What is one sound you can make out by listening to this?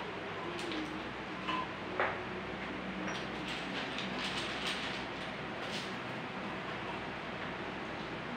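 An aluminum drink can clinks and scrapes on a table as a hand handles it.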